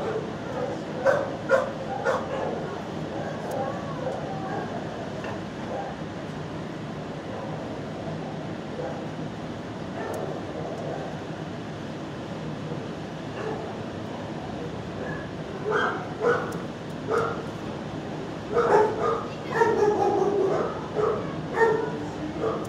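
A dog's claws click on a hard floor.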